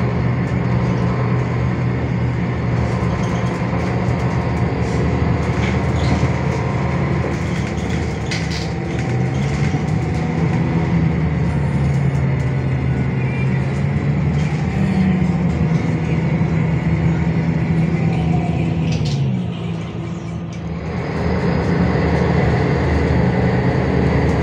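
A bus rattles and creaks as it drives along.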